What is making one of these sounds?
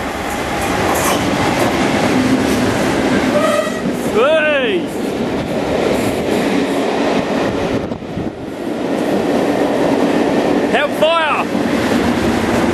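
Train wheels clatter over rail joints as coaches rush past.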